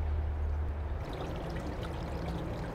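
Water trickles over rocks.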